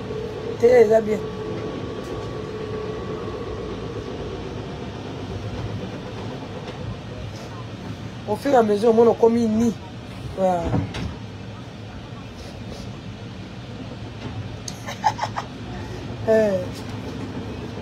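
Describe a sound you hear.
A woman talks close by, in short bursts.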